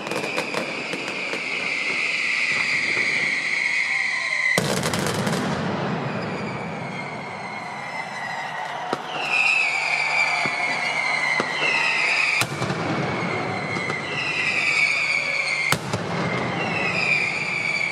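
Fireworks crackle and pop in rapid bursts.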